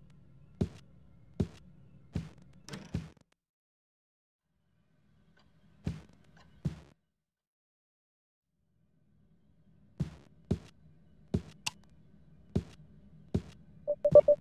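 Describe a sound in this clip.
Footsteps thud slowly across a wooden floor.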